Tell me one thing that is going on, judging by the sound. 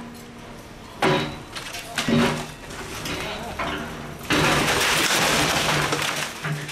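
Broken masonry crashes and clatters as a wall is knocked down.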